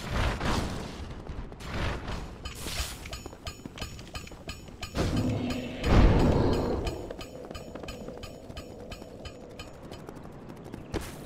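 Quick footsteps run over hard stone.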